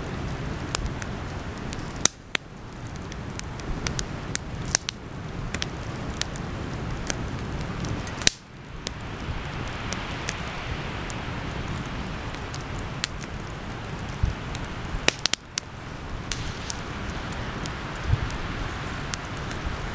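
Flames roar softly over burning logs.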